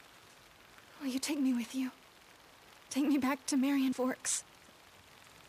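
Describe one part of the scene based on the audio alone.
A young woman speaks pleadingly, close by.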